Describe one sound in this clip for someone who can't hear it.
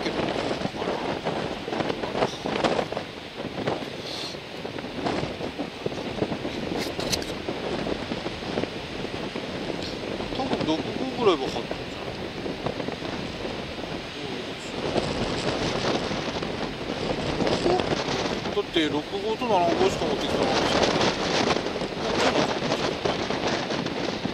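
Strong wind gusts and buffets outdoors.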